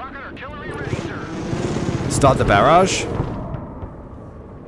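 A jet aircraft roars past overhead.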